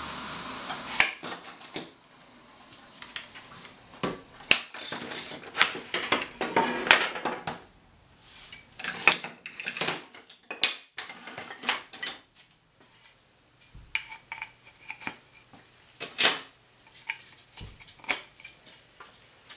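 Wooden boards knock and clatter against a workbench.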